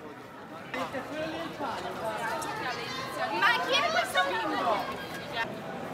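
A crowd of people chatters and walks along a busy street.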